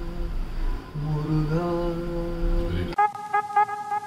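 An elderly man speaks nearby.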